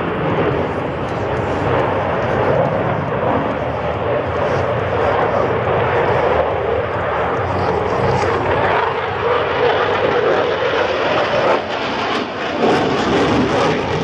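A jet engine roars loudly overhead as a fighter plane flies past.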